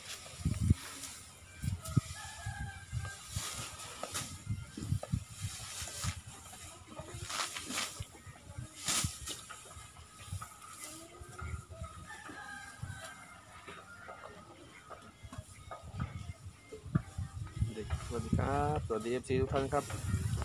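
A baby elephant shuffles and rolls in sand.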